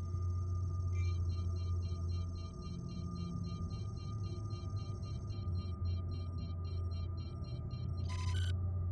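A cockpit warning alarm beeps rapidly and evenly.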